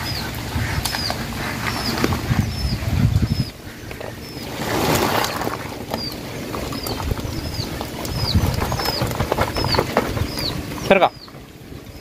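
Wet fish slither and slap onto a plastic sheet as a sack is emptied.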